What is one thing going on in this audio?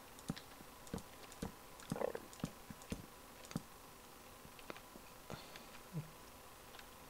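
Wooden blocks thud softly as they are placed, one after another.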